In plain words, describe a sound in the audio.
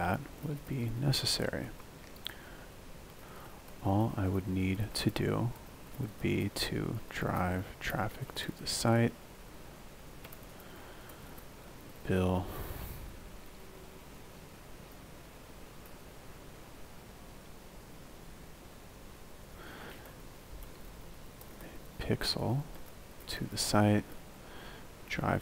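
A young man speaks calmly into a close microphone, pausing often.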